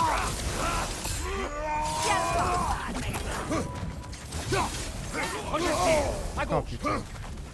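Flaming blades swoosh and clash against an enemy.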